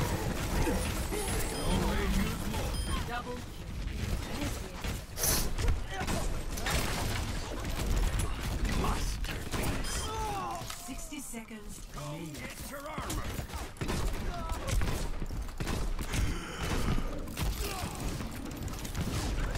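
Video game gunfire and explosions boom rapidly and loudly.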